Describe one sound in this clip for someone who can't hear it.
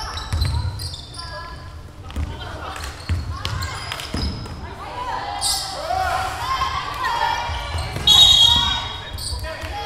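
A basketball bounces with dull thuds.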